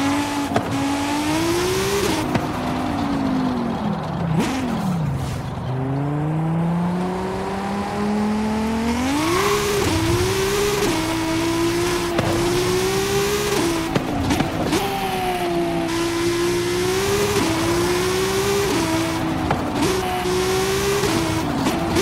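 A sports car engine roars and revs up through the gears.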